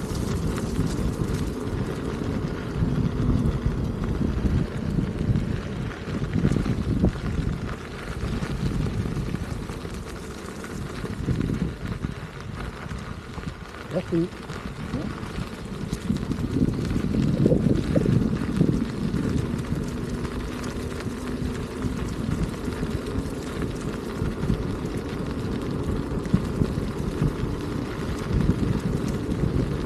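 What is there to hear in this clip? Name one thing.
Wind rumbles and buffets loudly against a microphone outdoors.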